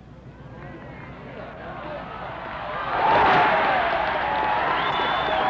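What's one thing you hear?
A large crowd cheers and applauds outdoors, swelling loudly.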